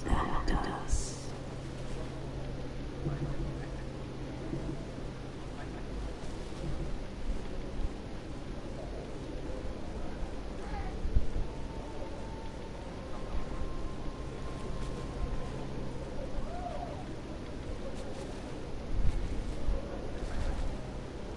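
Heavy footsteps crunch on snowy ground.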